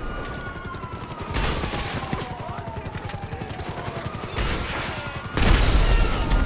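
A helicopter's rotor chops overhead.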